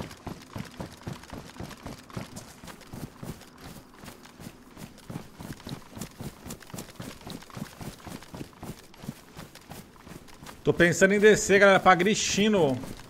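Footsteps tread steadily through grass and gravel.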